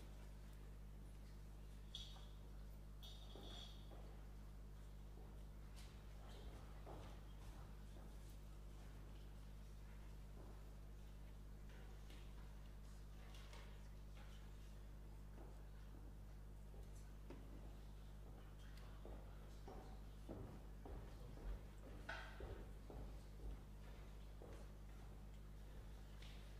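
A piano plays soft, sparse notes in a large, echoing hall.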